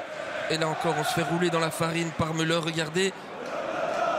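A large stadium crowd sings a loud chant in unison.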